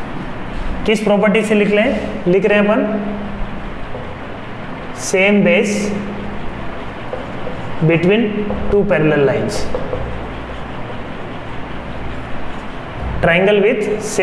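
A man speaks calmly in short bursts with pauses, close by.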